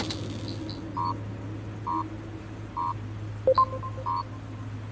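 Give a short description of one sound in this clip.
A computer panel gives short electronic beeps as options are selected.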